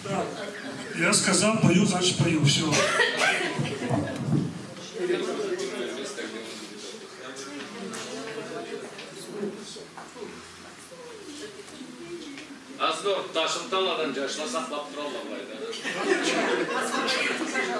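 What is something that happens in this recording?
An elderly man speaks in a room with a slight echo.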